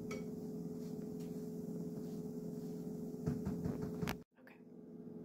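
Food sizzles softly in a frying pan.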